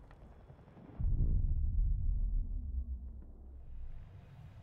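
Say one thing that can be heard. An explosion booms with a deep rolling rumble.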